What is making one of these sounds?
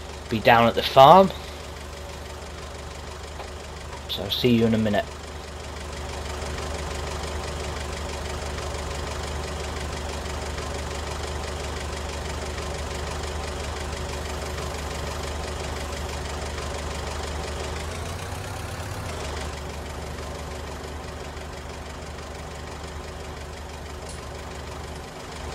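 A small engine hums steadily.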